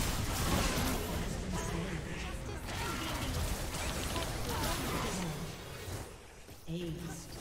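Game spells and attacks crackle and clash in a busy fight.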